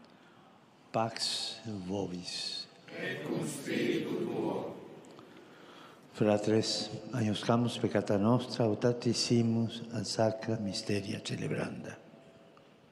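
An elderly man speaks slowly and solemnly into a microphone, heard over a loudspeaker outdoors.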